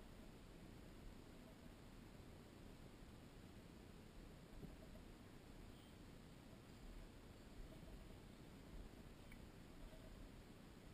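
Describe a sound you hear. Wind blows softly through leafy trees outdoors.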